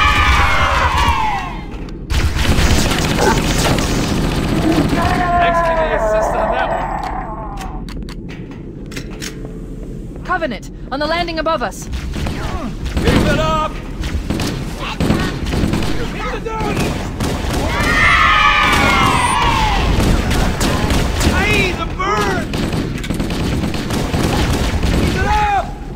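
Energy weapons fire with high whining zaps.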